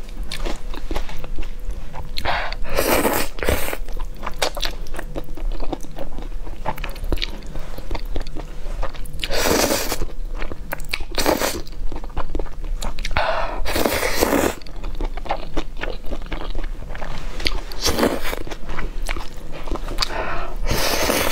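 A woman chews a mouthful of noodles close to the microphone.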